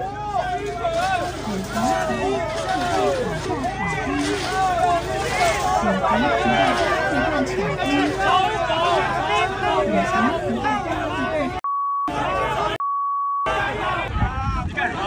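A crowd of people chants and shouts loudly outdoors.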